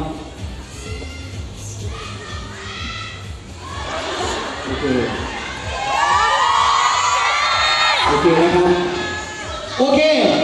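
A woman speaks through a loudspeaker.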